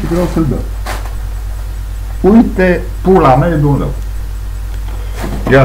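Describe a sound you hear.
A man speaks close up, in short animated bursts.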